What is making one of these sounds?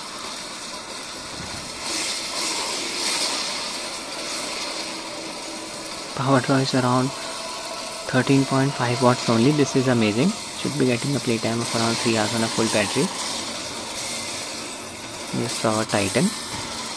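Video game explosions and fighting noises play from a small handheld speaker.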